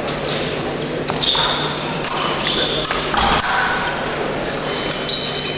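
Fencers' feet stamp and shuffle on the floor.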